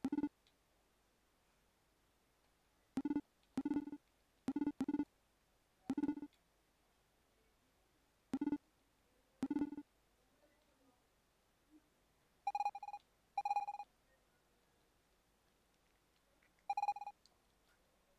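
Short electronic blips chime in quick bursts.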